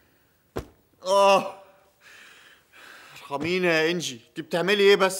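A man sobs and wails in distress close by.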